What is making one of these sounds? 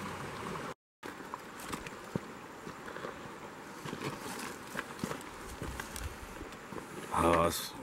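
Pebbles crunch underfoot.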